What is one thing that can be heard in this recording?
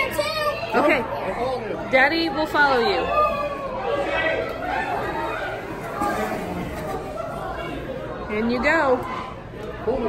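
A girl shrieks excitedly nearby.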